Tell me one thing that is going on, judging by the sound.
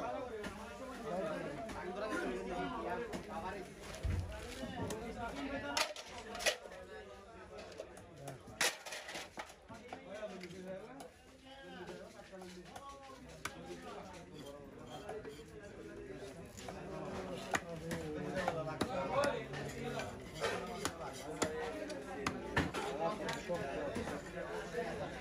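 A knife scrapes and slices along a fish on a wooden block.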